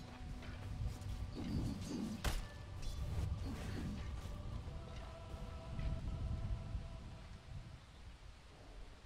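Spell sounds chime and ring.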